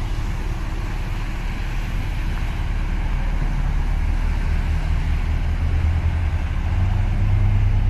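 A small boat's engine hums steadily as it passes.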